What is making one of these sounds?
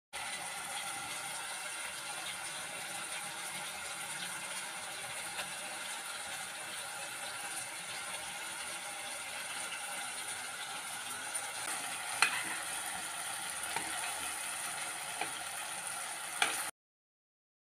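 Chicken pieces sizzle and crackle as they fry in hot oil.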